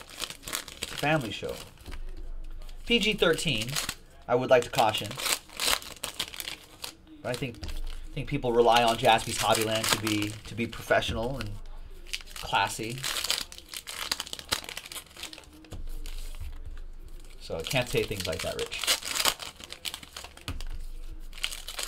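Trading cards rustle and slap as they are shuffled.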